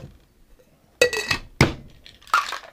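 A metal shaker clinks against a glass as it is capped.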